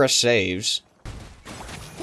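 Magical blasts burst and crackle in quick succession.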